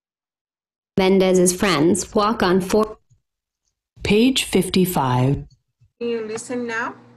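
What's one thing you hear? A woman reads aloud clearly, heard through an online call.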